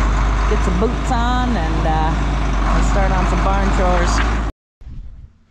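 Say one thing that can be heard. A tractor engine rumbles nearby.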